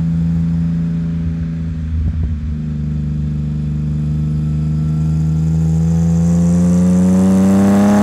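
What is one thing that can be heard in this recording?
A car engine rumbles loudly close by and revs higher toward the end.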